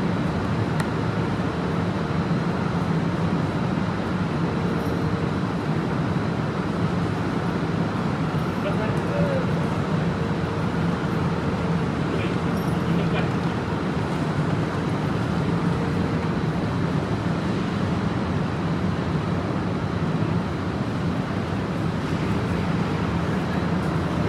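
Bus engines idle with a steady low hum nearby.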